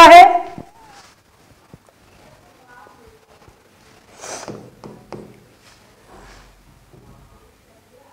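A young woman speaks into a microphone in a teaching manner.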